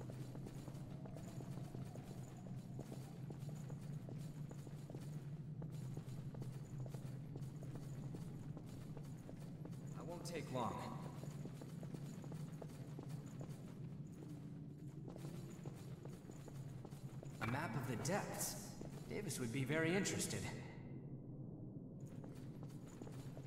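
Footsteps run on a gritty stone floor.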